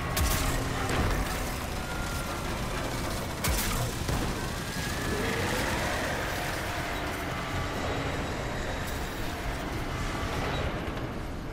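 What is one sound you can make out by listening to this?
Gunfire and energy blasts crackle loudly in a game.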